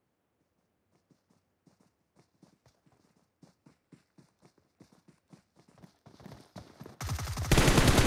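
Footsteps shuffle and crunch over dry ground.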